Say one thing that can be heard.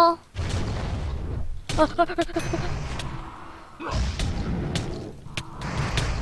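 Fiery blasts whoosh and crackle during a fight.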